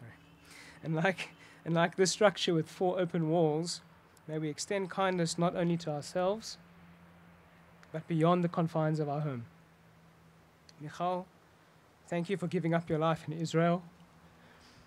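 A young man reads out calmly into a microphone, close by.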